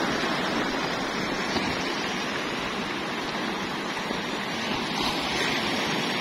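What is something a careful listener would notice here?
Waves crash and wash over rocks.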